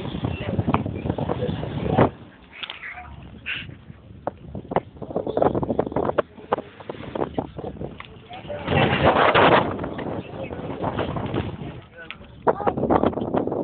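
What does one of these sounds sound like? Several young men talk and shout nearby.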